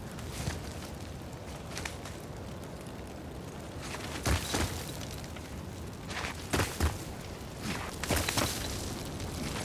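Hands scrape and thud against rock while climbing.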